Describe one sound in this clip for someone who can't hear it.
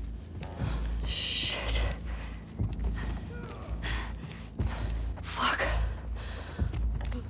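A young woman swears under her breath.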